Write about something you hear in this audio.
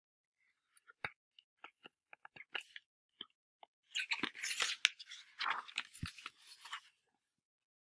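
Paper pages rustle as a book is handled.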